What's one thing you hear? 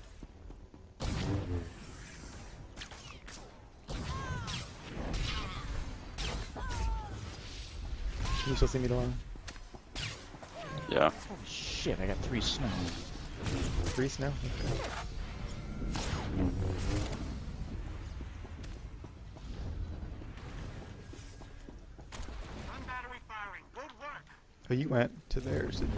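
Energy blasts and zaps go off in quick bursts.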